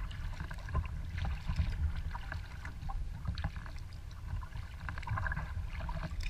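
Water laps and splashes against a kayak's hull.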